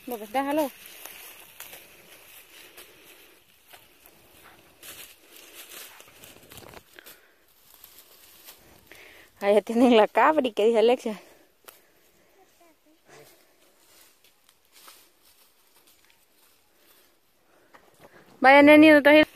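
Footsteps rustle through dry undergrowth.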